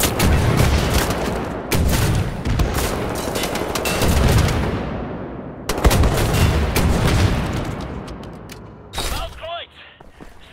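An automatic rifle fires in loud rapid bursts with booming echoes.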